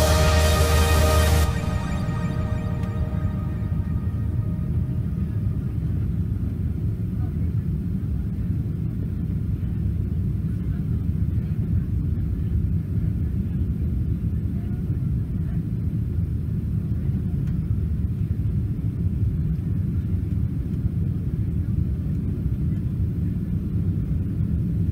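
A jet engine roars in a steady, deep rumble from inside an aircraft cabin.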